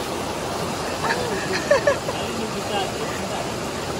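Young people call out and laugh close by.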